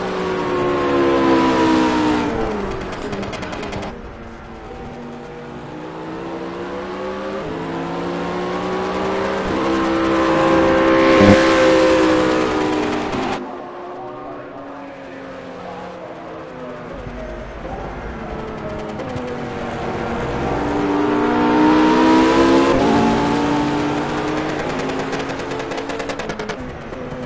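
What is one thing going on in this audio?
Flat-six race cars roar past at full throttle.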